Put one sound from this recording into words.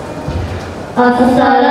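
A young boy speaks loudly into a microphone, heard through loudspeakers.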